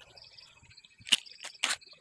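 A plastic glue bottle is squeezed onto wood.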